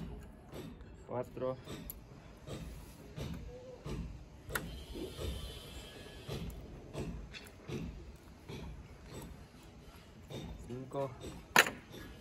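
A nail squeals as pincers pry it out of wood.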